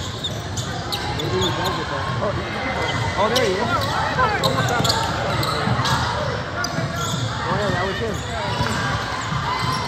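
Sneakers squeak sharply on a hardwood court in an echoing gym.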